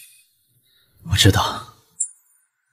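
A young man answers calmly in a short phrase.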